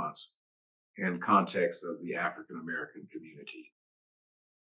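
An older man speaks calmly into a microphone over an online call.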